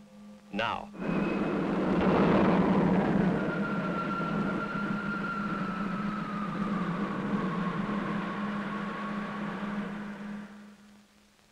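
A machine whirs and hums loudly.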